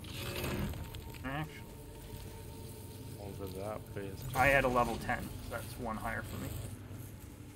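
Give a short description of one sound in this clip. A man talks calmly into a nearby microphone.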